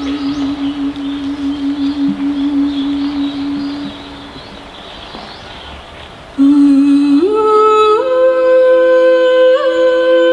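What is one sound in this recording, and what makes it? Musicians play long, held notes through loudspeakers outdoors.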